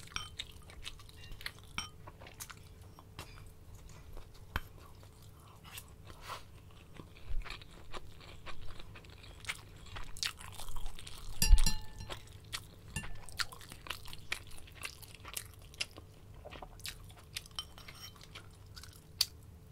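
A young woman slurps soup close to a microphone.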